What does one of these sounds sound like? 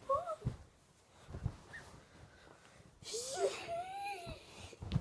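A child's feet thump on the floor.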